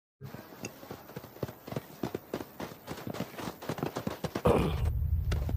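Footsteps patter quickly on sandy ground.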